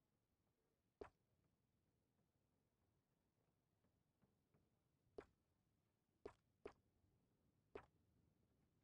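A menu selection clicks sharply a few times.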